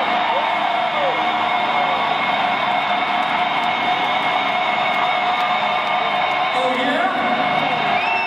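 Loud distorted electric guitar plays in a large echoing arena.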